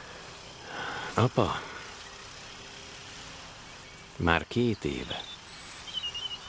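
A younger man speaks quietly, close by.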